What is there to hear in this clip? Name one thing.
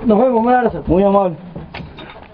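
A man speaks loudly and cheerfully, close by.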